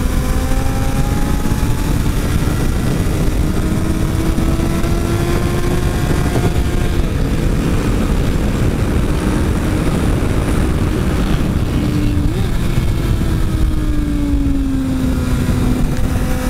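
A motorcycle engine drones loudly up close, its pitch rising and falling with the speed.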